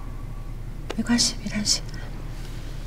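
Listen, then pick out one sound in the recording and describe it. A young woman speaks softly and reassuringly.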